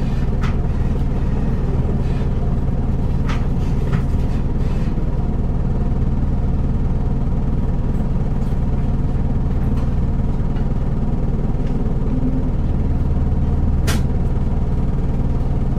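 A diesel city bus engine idles, heard from inside the bus.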